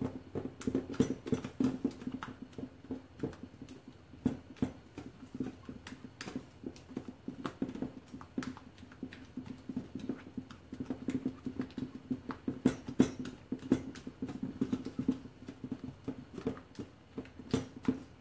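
A spatula scrapes and taps against a metal bowl while mixing batter.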